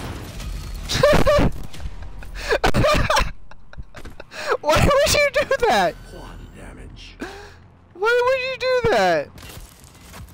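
A woman talks with animation into a microphone.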